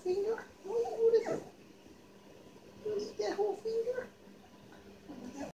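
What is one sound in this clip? A puppy whines and whimpers in short, high bursts.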